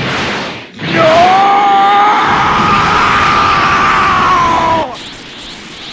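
A deep monster voice screams a long drawn-out cry.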